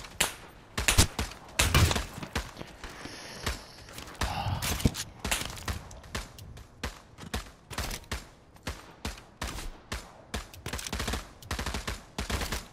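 Gunshots crack in rapid bursts, close by.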